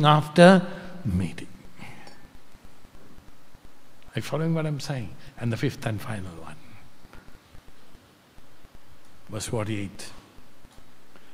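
An elderly man speaks slowly and calmly into a microphone, with pauses.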